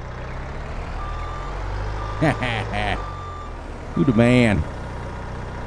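A hydraulic arm whines as it lifts and lowers.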